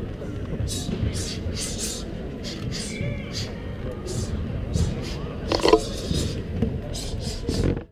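A man exhales in sharp hissing bursts while throwing punches.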